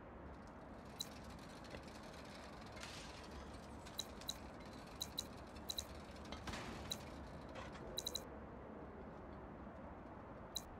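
Game menu clicks tick sharply, one after another.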